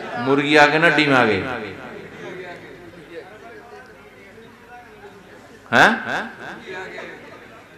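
An elderly man preaches loudly and with feeling through a microphone and loudspeakers.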